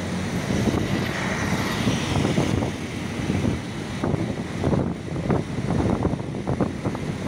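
Traffic rumbles steadily along a busy road nearby.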